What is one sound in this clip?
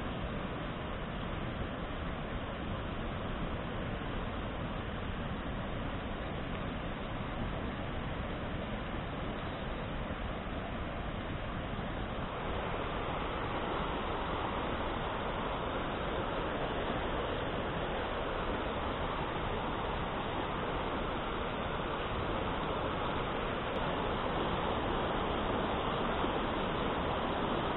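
A river rushes steadily over rocks nearby.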